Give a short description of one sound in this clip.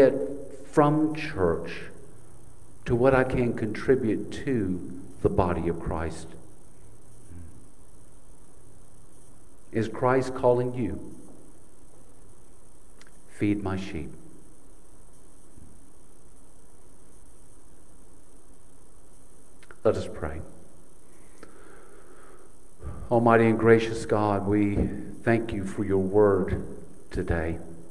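An older man speaks calmly into a microphone, with long pauses.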